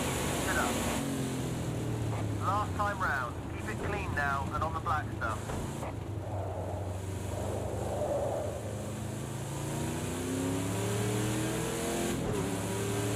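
A racing car engine drops in pitch as the car slows and then revs up again.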